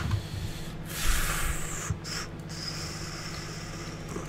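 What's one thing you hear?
Flamethrowers roar in bursts.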